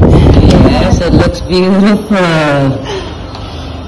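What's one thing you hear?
A young woman laughs loudly and squeals close by.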